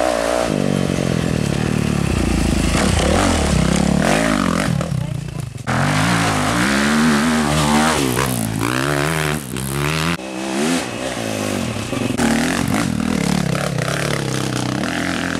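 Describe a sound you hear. A dirt bike engine revs hard, rising and falling in pitch.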